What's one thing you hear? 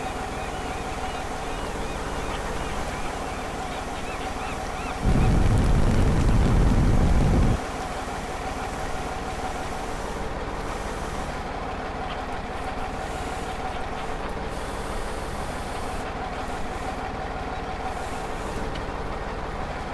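A mobile crane truck's engine idles.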